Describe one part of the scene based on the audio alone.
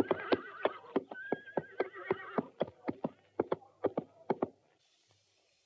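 A horse's hooves clop steadily on hard ground.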